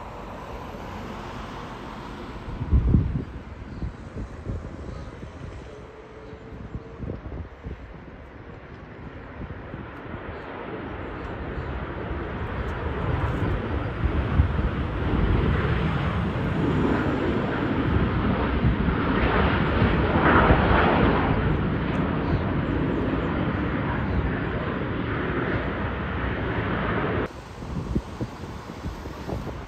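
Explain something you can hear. A jet airliner's engines rumble and roar in the distance.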